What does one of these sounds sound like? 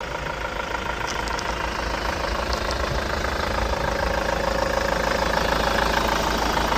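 A car engine idles steadily close by.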